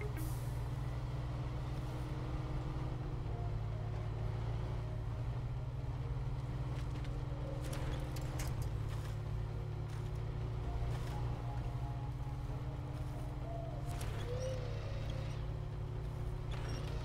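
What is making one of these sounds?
A truck engine rumbles low and steadily as it crawls over rough ground.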